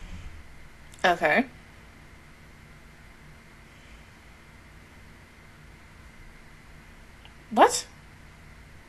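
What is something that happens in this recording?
A young woman makes short vocal sounds close to a microphone.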